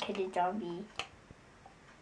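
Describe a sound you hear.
A young girl speaks close by in a playful voice.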